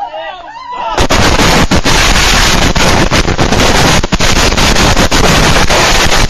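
A pile of fireworks explodes in a rapid barrage of bangs and crackling.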